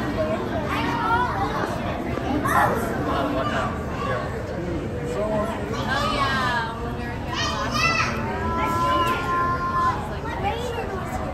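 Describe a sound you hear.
Children chatter and call out excitedly nearby.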